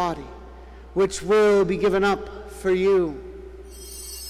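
A man chants a short sung phrase through a microphone in a large echoing hall.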